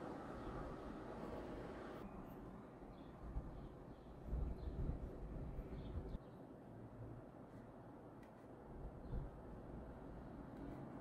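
A paintbrush dabs and brushes softly on canvas.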